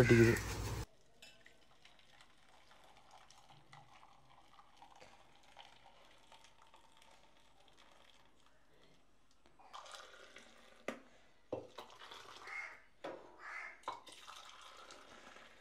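Liquid pours and trickles through a strainer into a pot.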